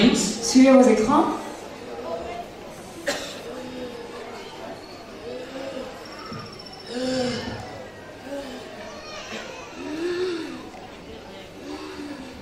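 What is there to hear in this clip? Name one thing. A woman wails and moans.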